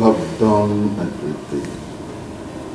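An elderly man speaks in a deep, drawn-out voice.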